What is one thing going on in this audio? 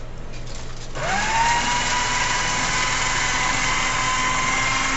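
A small machine whirs steadily.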